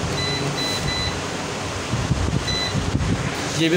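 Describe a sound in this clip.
An electronic device beeps in short, high tones as its buttons are pressed.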